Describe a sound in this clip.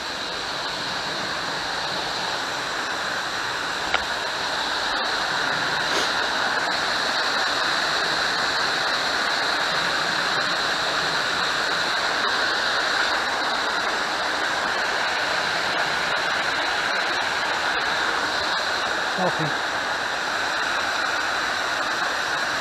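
A shallow stream trickles and gurgles over rocks nearby, steady throughout.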